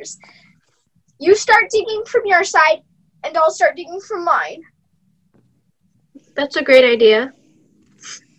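A teenage boy talks over an online call.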